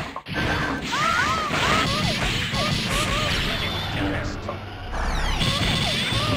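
Rapid punches and crackling energy blasts sound in quick succession.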